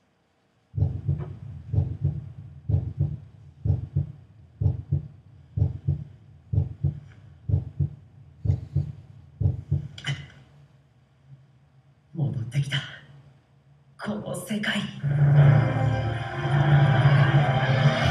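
Music with a steady, pulsing beat plays through loudspeakers in a room, then swells louder near the end.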